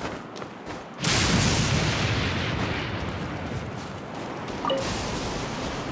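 A magical beam gives off a loud, steady rushing whoosh.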